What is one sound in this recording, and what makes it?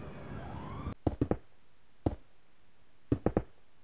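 Stone blocks thud softly as they are placed one after another.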